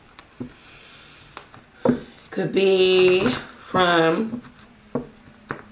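Playing cards shuffle and rustle.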